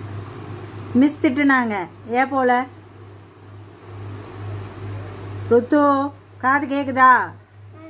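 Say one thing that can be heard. A small child speaks in short high-pitched bursts close by.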